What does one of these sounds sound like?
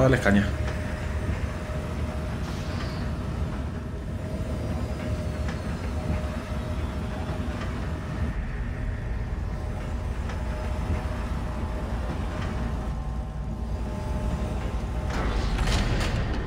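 A lift hums and rumbles steadily as it moves.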